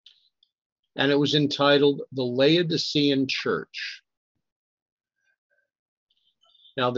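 An elderly man reads aloud calmly, close to a microphone.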